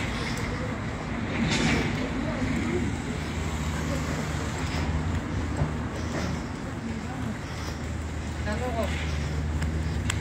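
A woman speaks quietly close to a phone microphone.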